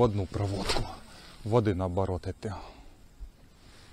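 A fishing reel whirs as it is wound in.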